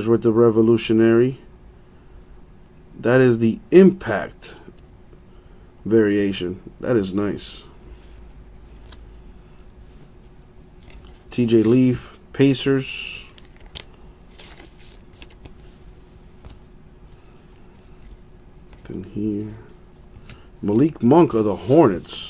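Trading cards rustle softly as they are handled.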